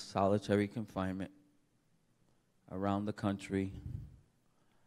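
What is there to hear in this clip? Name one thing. A man speaks calmly and close by in short phrases.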